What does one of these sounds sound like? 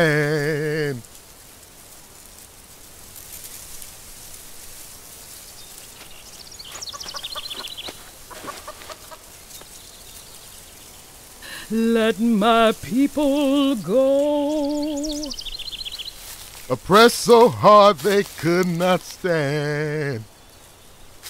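An elderly man speaks with feeling, close by.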